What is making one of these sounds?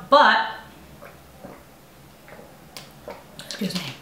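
A woman gulps water from a plastic bottle.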